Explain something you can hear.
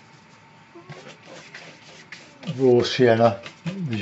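A wet watercolour brush swishes across paper.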